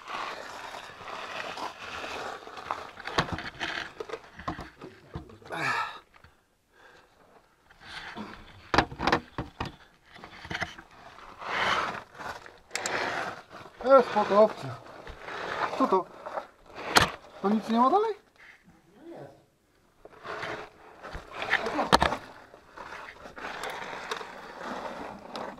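Boots scuff and crunch on loose gravel and dirt.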